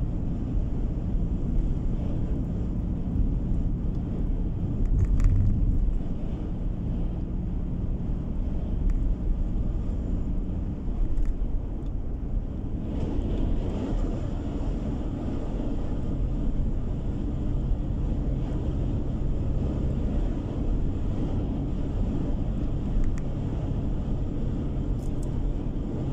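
Tyres roll on smooth pavement with a low, constant rumble.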